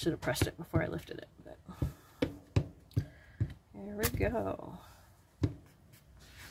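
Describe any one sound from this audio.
An ink pad taps quickly and repeatedly against a rubber stamp.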